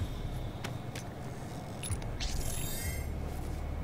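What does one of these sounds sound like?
Flesh squelches and bones crunch as a creature is torn apart.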